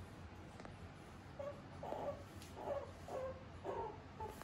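A small animal chews and laps food from a bowl.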